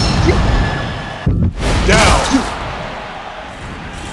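A body crashes heavily to the floor.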